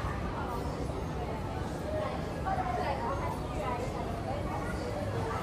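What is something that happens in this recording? Distant voices murmur in a large echoing hall.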